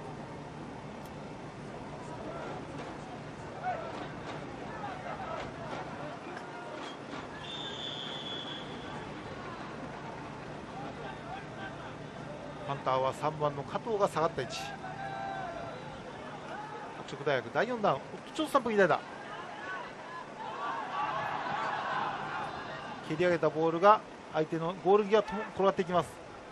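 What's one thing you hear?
A crowd murmurs and cheers in the distance, outdoors.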